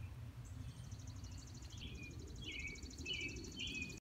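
Leaves rustle as plants are brushed aside.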